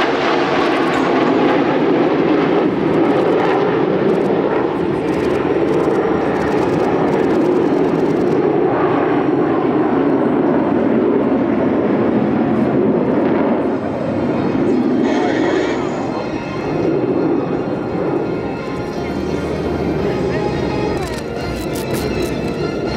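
Jet engines roar loudly overhead.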